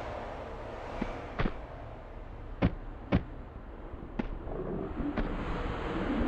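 Footsteps thud sharply on stone.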